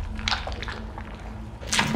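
Wet flesh squelches as hands dig into a body.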